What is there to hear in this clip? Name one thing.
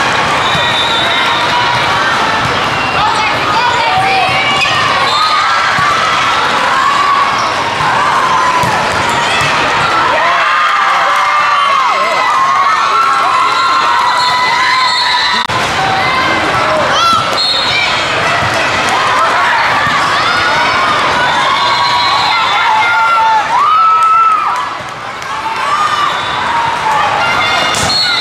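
Young women shout and call out to each other on the court.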